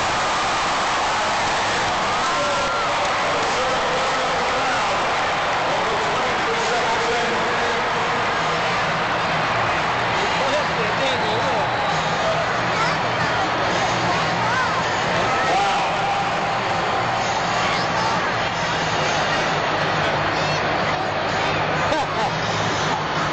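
A large crowd roars and cheers in a huge echoing arena.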